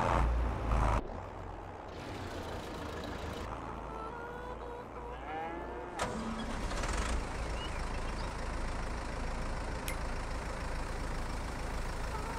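A tractor engine idles quietly.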